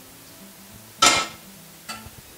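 A metal pot clanks on a stove.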